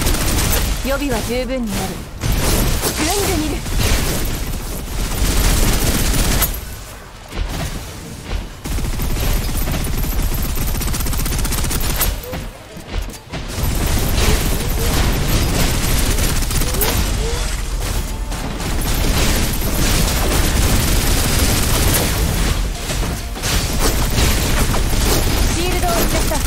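Rapid gunfire rattles and crackles.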